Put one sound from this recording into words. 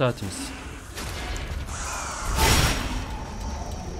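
A sword strikes metal with a loud clash.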